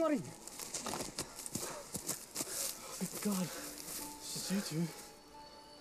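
Footsteps crunch on dry grass and leaves.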